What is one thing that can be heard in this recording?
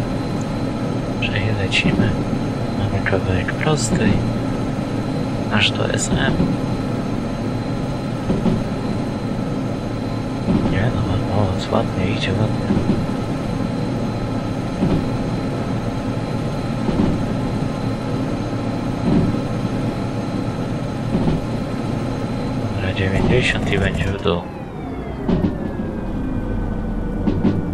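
A diesel locomotive engine drones steadily, then winds down.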